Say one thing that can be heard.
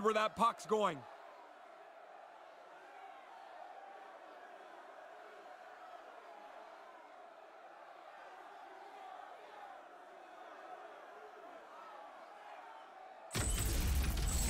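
A large crowd murmurs in an echoing arena.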